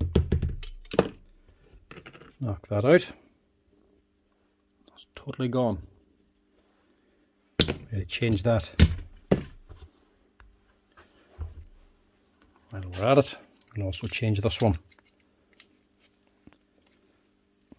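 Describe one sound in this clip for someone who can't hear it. Small metal parts clink and rattle as they are handled.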